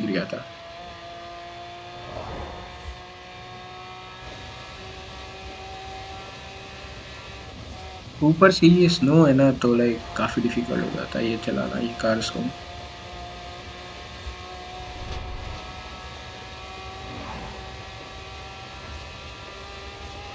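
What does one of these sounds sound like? A sports car engine roars at high speed.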